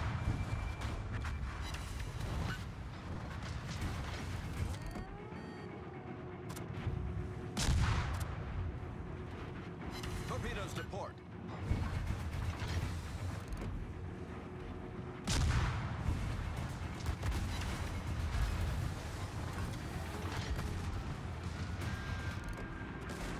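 Naval guns boom in heavy, rumbling blasts.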